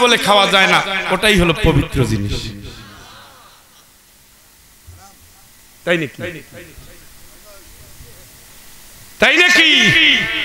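A middle-aged man preaches loudly and passionately into a microphone, his voice ringing through a loudspeaker with echo.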